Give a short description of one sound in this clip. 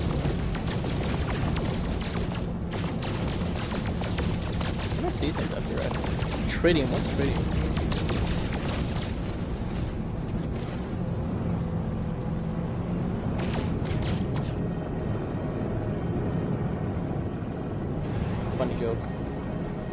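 A spaceship engine hums steadily and low.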